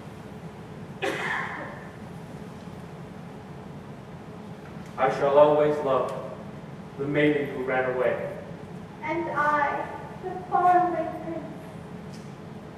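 An adult performer speaks out loudly on a stage, heard from far back in a large hall.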